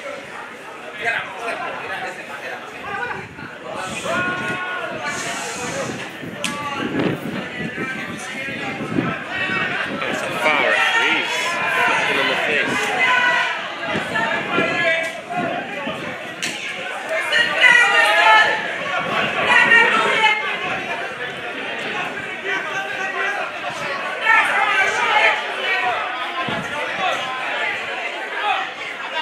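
Spectators chat and call out nearby.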